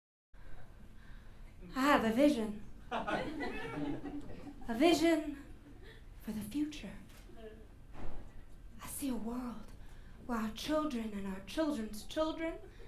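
A young woman sings expressively in a room with some echo.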